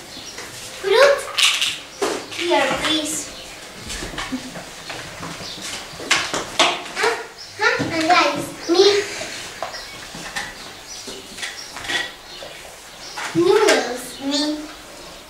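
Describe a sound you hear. Young girls talk and exclaim excitedly nearby.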